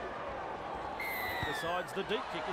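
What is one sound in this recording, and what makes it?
A referee's whistle blows sharply once.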